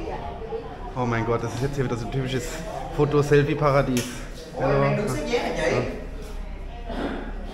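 Young children talk and call out with animation nearby.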